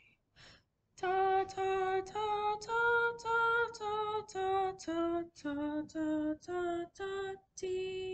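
A young woman sings a simple melody in a clear, steady voice, close by.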